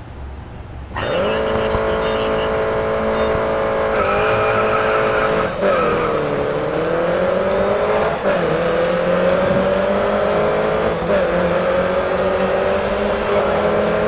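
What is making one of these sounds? A racing car engine roars loudly and climbs in pitch as it accelerates, dropping with each gear change.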